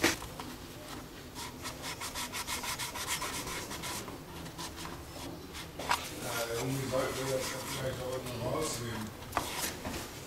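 A cloth rubs over a wooden surface.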